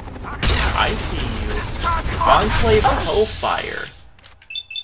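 A heavy gun fires blasts in quick bursts.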